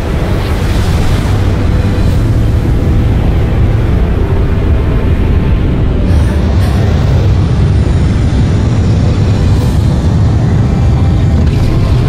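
A huge fiery blast roars and rumbles deeply.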